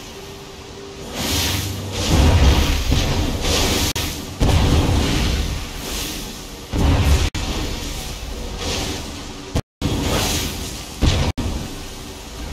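Fireworks boom and crackle overhead in quick bursts.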